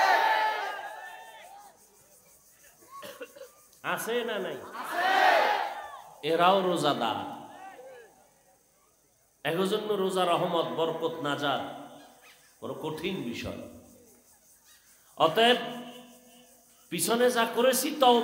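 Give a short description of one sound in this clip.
A man preaches forcefully into a microphone over loudspeakers, in bursts with pauses, his voice echoing outdoors.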